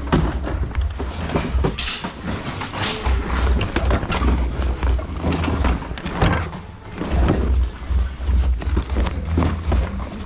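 A bag's fabric and buckles rustle and clink as gloved hands handle it.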